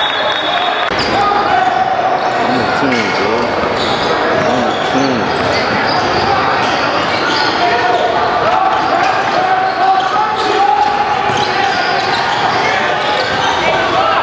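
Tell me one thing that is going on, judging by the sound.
A crowd of young voices chatters and calls out in a large echoing gym.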